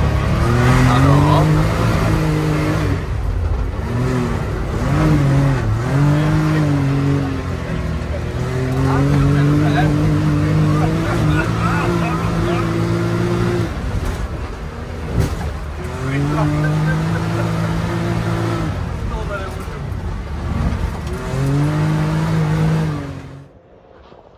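An off-road vehicle's engine revs up and down as it drives over a rough dirt track.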